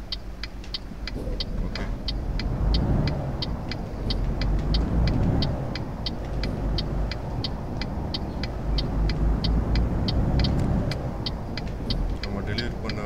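A turn signal ticks at an even pace, then stops.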